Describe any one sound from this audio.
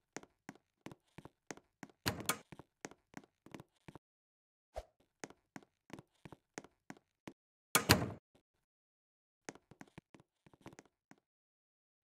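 Quick footsteps tap along in an even rhythm.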